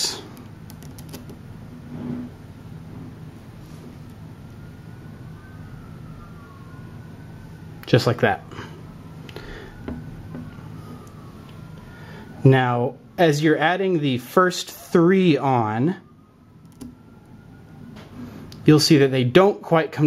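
Small magnetic balls click and clack together as they are handled.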